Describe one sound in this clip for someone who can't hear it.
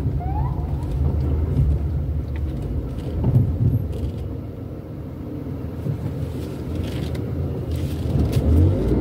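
A car engine hums low and steady from inside a slowly moving car.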